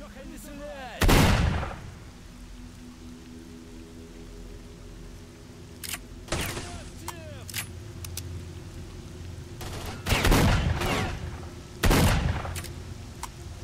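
Loud gunshots boom and echo outdoors.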